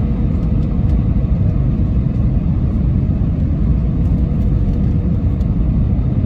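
A jet engine roars steadily, heard from inside the cabin.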